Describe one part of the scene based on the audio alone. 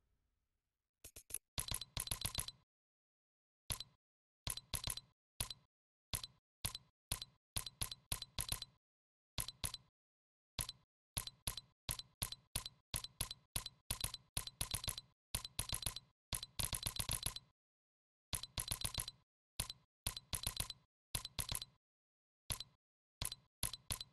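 Short menu ticks click in quick bursts as a selection moves from item to item.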